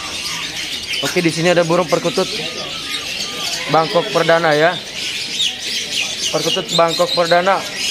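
Doves coo in deep, rolling bursts close by.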